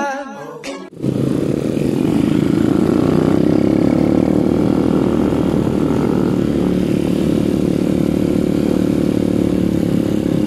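Motorcycle engines rumble and drone steadily close by.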